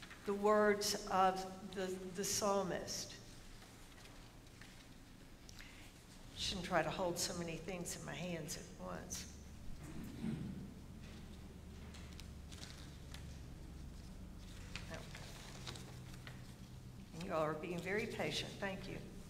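A woman speaks calmly through a microphone in a large echoing room.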